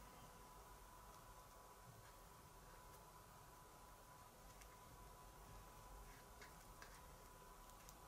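Fingers rub softly against paper.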